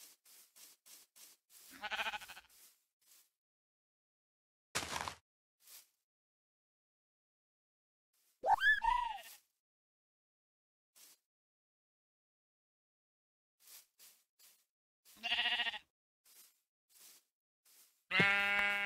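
Footsteps thud softly on grass.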